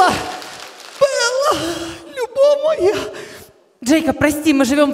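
A woman sings into a microphone over a loudspeaker.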